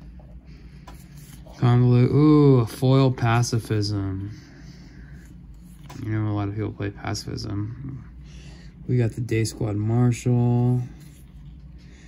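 Playing cards slide and rustle against each other.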